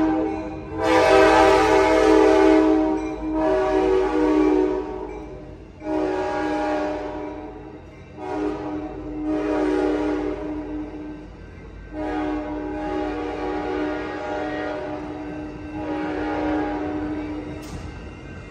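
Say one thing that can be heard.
A train horn blows loud, repeated blasts close by.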